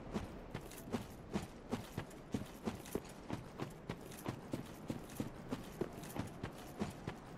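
Armoured footsteps thud steadily over rough ground.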